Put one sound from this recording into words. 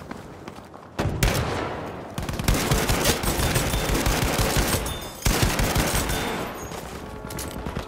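Rapid gunfire rattles loudly in an echoing space.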